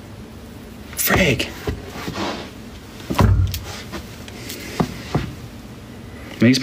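A young man speaks casually and close to a microphone.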